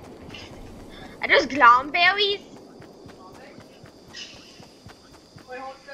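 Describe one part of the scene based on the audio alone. Footsteps run through grass.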